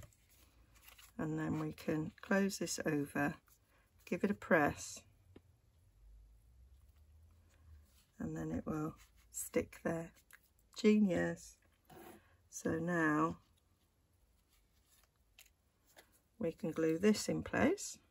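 Stiff card rustles and taps softly as it is folded and pressed down.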